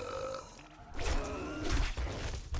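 A zombie snarls close by.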